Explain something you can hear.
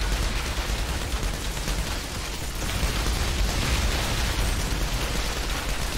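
Flames roar and explosions boom.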